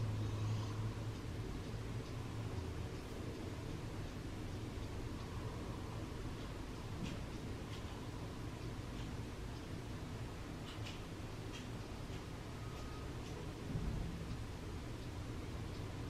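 Strong wind blows outdoors and rustles through tree branches.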